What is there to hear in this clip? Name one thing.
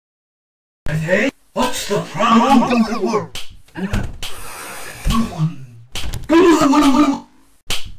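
A sharp slapping sound repeats.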